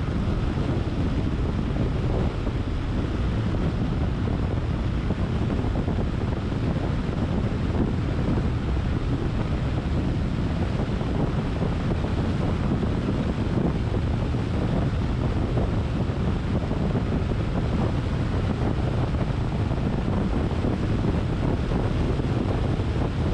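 A car's engine and tyres rumble steadily on a paved road.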